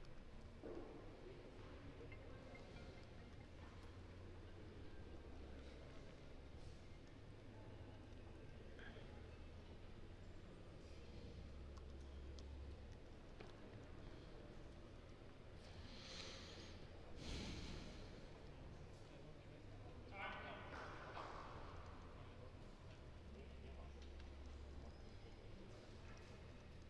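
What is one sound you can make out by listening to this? Spectators murmur quietly in a large indoor hall.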